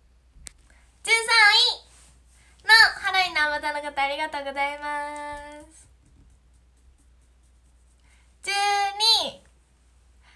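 A young woman talks cheerfully, close to the microphone, in short bursts.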